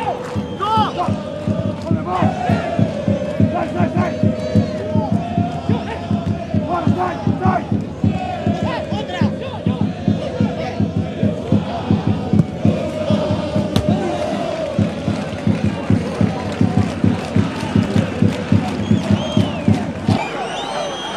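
Drums beat steadily in a stadium crowd.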